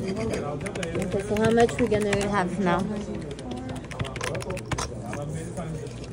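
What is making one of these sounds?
Fingers tap calculator keys with quick plastic clicks.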